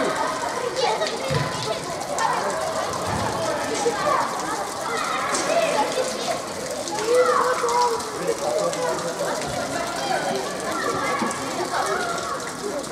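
Young players shout and call to each other across a large echoing hall.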